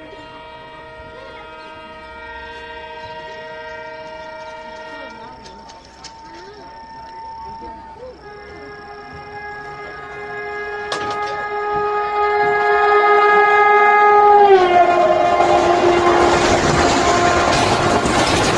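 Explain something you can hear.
A locomotive horn blares loudly from an approaching train, in long steady blasts, and drops in pitch as it passes.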